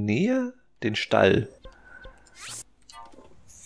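Short electronic menu blips sound.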